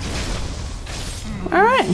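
A torch fire crackles.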